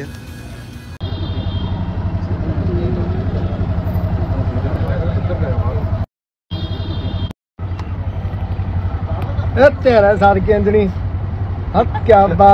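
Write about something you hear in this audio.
An auto-rickshaw engine chugs steadily close by.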